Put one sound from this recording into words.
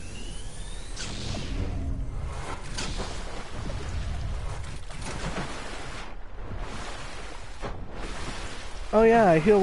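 Water splashes as a game character swims.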